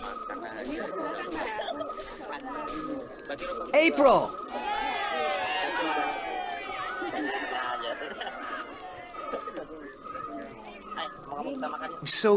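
A campfire crackles softly.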